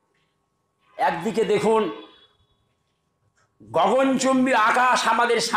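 An elderly man preaches loudly and with fervour into a microphone.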